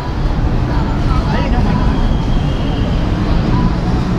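A group of adults chat with animation outdoors.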